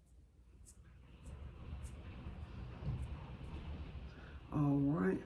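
A makeup brush brushes softly across skin.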